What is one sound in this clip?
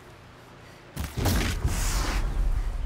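A bowstring is released and an arrow whooshes away.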